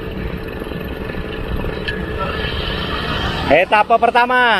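A motorbike engine rumbles close by as it rides along.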